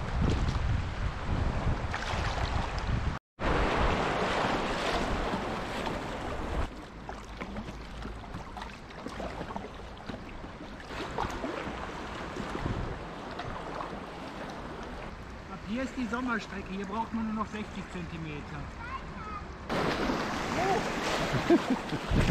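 River water rushes and churns loudly.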